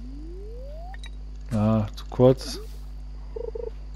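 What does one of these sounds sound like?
A fishing line is cast with a quick swish.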